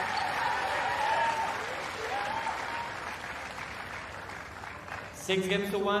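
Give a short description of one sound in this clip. A crowd applauds and cheers.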